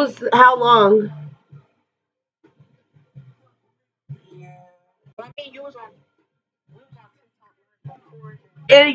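A young woman speaks animatedly close to a microphone.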